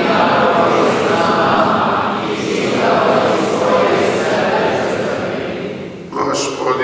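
A group of young people sing together in a large echoing room.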